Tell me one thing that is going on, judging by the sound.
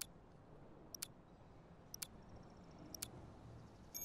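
A countdown timer beeps once a second.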